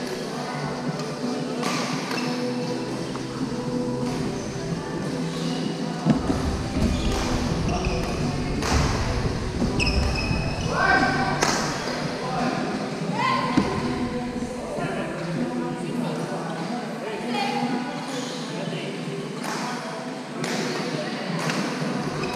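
Sports shoes squeak on a wooden floor.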